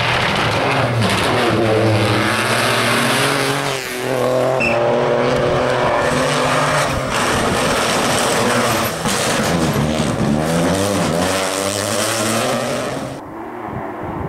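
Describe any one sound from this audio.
A rally car engine roars loudly as it accelerates and revs past up close.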